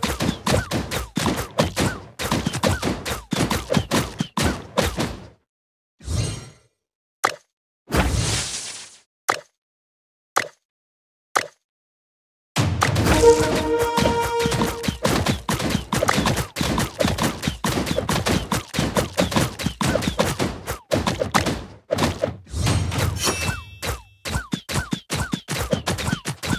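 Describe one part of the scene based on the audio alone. Rapid game sound effects of shots and hits pop and click over and over.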